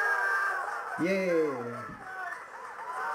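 A man shouts with joy nearby.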